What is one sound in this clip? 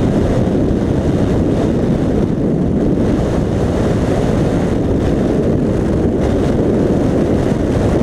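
Strong wind roars and buffets steadily past a flier.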